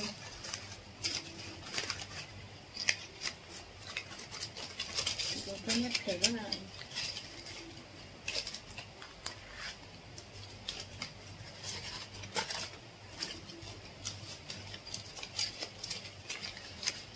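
Paper banknotes rustle and crinkle as they are counted by hand.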